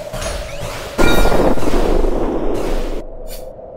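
A loud game explosion bursts and roars.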